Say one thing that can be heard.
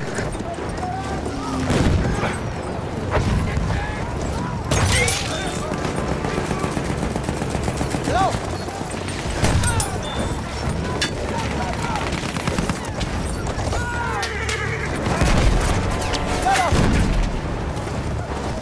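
Gunfire cracks and booms in the distance.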